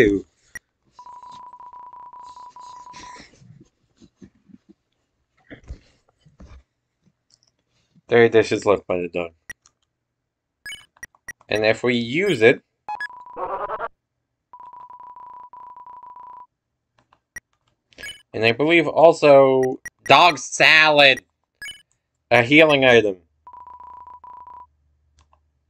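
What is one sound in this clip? A video game's text beeps rapidly in a steady tone as dialogue types out.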